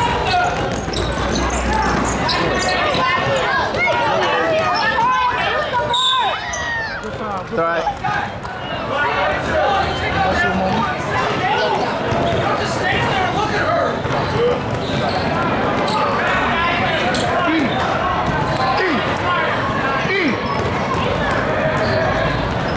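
Young women shout and call out to each other across the court.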